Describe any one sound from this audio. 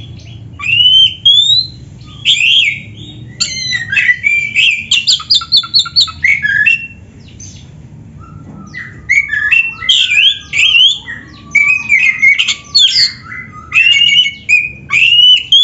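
A songbird sings loud, varied whistling phrases close by.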